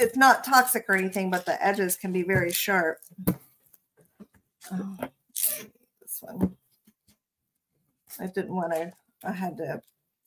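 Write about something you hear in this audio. Glitter rattles in a plastic jar.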